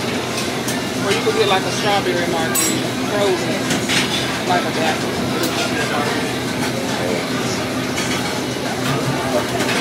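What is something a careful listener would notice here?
A man talks casually close by.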